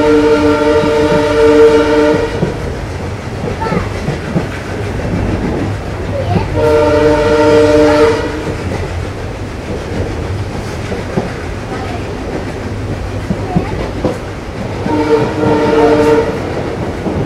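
A train horn sounds several long blasts.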